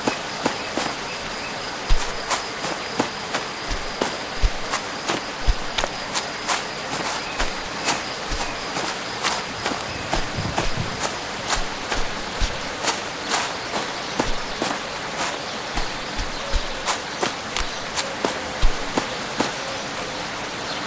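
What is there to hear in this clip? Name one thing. Steady rain falls outdoors.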